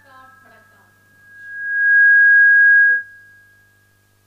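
A microphone gives off a loud, shrill feedback whine.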